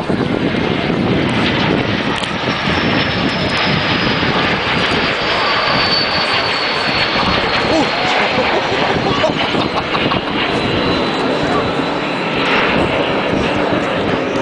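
Jet engines roar loudly overhead.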